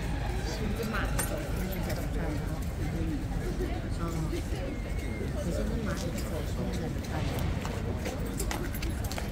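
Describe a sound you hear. A horse's hooves clop and shuffle on stone paving.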